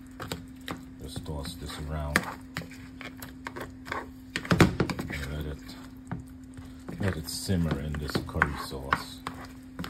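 A metal spoon scrapes and knocks against a pan.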